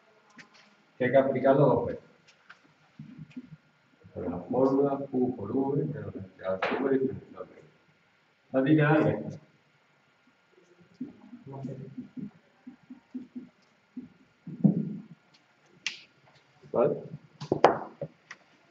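A man speaks calmly and clearly, as if explaining, close by.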